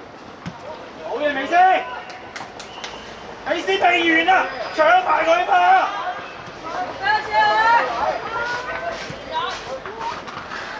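Young boys shout to each other on a playing field.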